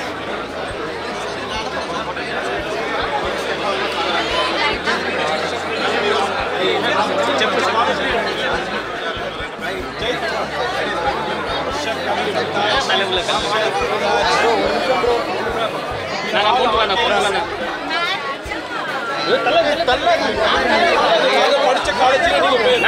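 A crowd of men and women chatter and call out loudly close by.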